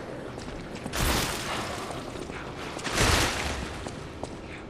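A heavy blade swooshes through the air.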